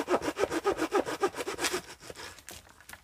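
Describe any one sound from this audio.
A hand saw cuts quickly through a branch in rapid strokes.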